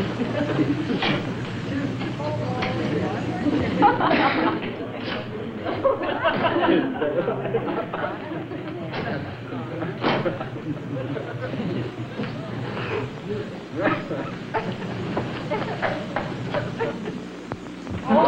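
A wooden window frame rattles and thumps.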